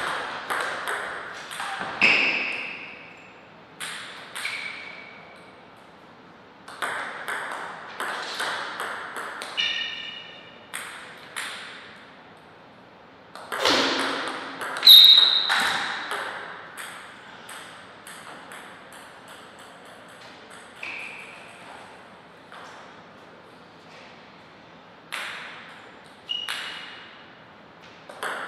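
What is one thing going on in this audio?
A table tennis ball clicks sharply back and forth between paddles and table in an echoing hall.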